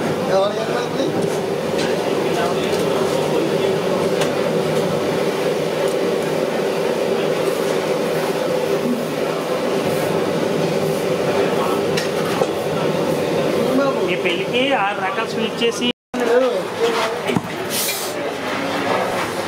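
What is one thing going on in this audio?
Syrup boils and bubbles steadily in a large pan.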